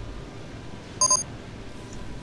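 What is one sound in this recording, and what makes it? A short electronic chime rings once.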